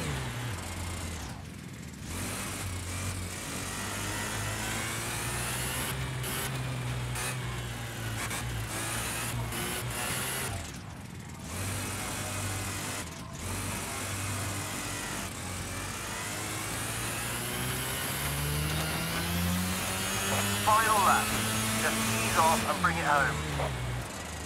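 A small kart engine buzzes steadily, rising and falling in pitch as it speeds up and slows down.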